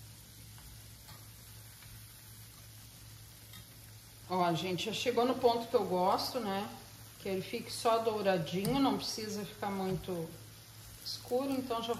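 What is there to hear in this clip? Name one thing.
A metal utensil scrapes and taps against a frying pan.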